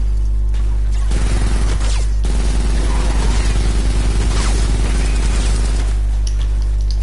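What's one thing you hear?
Rapid gunfire crackles in a game.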